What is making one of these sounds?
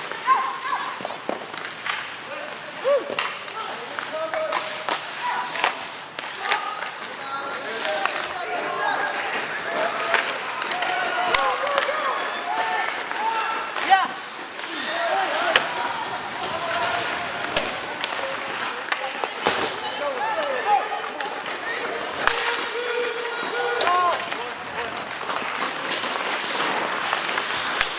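Young players shout across a large echoing rink.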